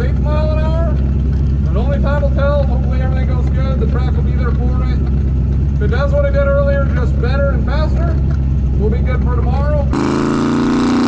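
A race car engine idles with a low, steady rumble.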